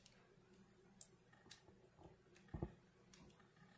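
Small metal pieces click softly against a plastic holder.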